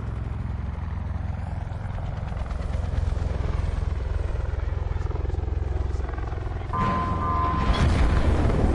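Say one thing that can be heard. Helicopter rotors thud steadily.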